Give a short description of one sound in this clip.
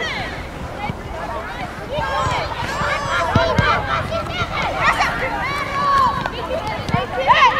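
Young female players shout and call out to each other across an open field outdoors.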